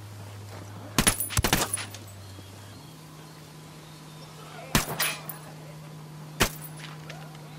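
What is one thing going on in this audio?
Suppressed rifle shots crack in short bursts.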